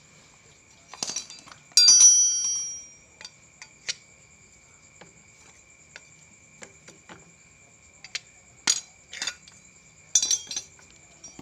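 Metal tools clink and clatter against each other.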